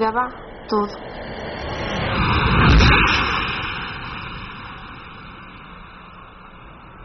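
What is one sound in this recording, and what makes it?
A car drives past, swelling and fading.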